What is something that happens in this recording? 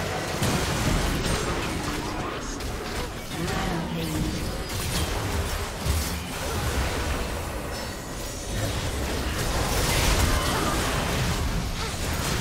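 Spell effects whoosh, crackle and burst during a game fight.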